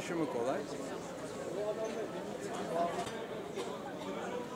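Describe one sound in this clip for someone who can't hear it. An elderly man speaks calmly, close up.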